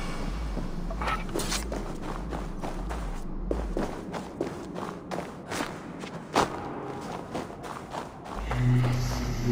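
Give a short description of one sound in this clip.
Footsteps crunch quickly over snow and rock.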